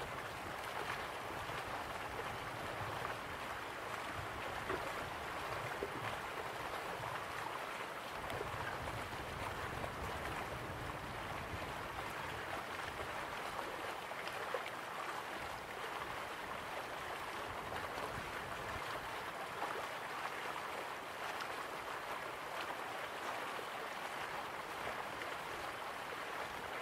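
A small waterfall splashes steadily into a pool.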